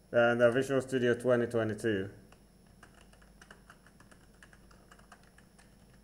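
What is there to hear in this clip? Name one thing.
Computer keys click softly as someone types.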